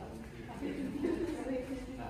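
Footsteps pass on a hard floor.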